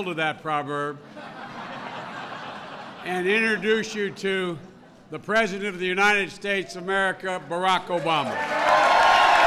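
An older man speaks into a microphone to an audience.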